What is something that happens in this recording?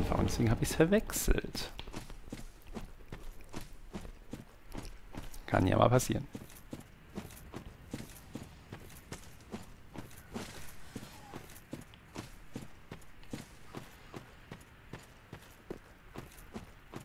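Armoured footsteps crunch steadily over rough ground.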